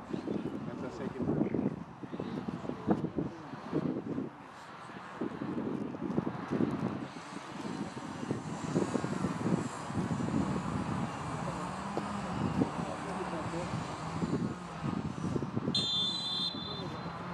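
Men shout and call to each other across an open outdoor field.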